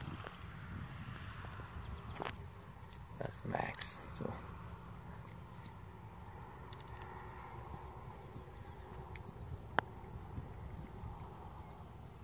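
Wind rumbles softly across the microphone outdoors.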